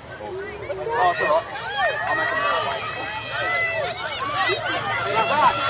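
Children and adults shout and cheer excitedly.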